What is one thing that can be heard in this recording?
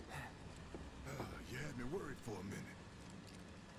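A man with a deep voice speaks with relief, close by.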